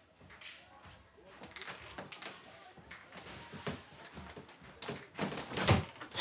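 Footsteps walk across a floor.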